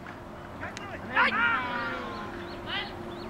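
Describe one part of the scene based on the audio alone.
Men shout out across an open field.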